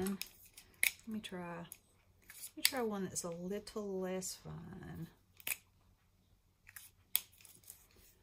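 Plastic marker pens click and clatter together in hands.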